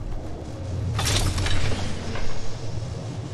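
A short click sounds as an item is picked up.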